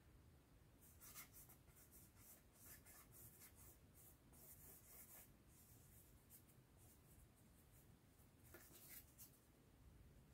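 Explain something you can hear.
A small tool scrapes lightly across a tile.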